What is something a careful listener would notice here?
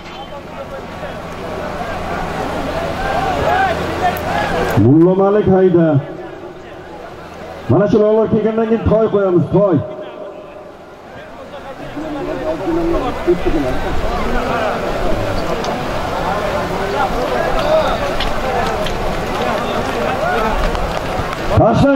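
A crowd of men shouts and calls out outdoors.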